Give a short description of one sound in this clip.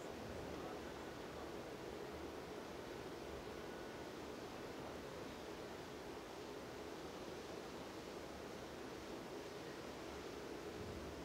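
Water from a fountain splashes steadily.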